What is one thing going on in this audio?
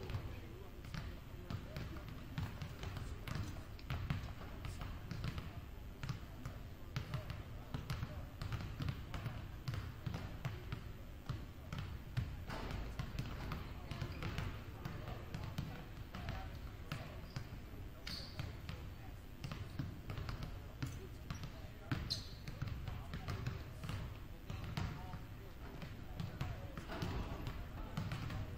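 Basketballs bounce on a wooden gym floor, echoing around a large hall.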